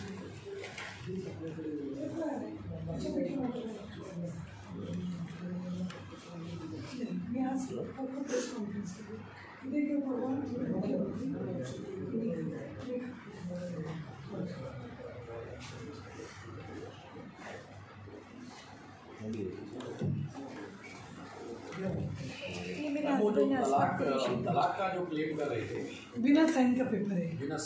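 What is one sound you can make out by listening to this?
A woman speaks steadily, close to a microphone.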